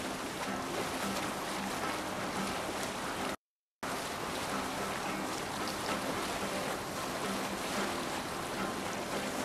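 Water rushes and splashes steadily against the hull of a moving boat.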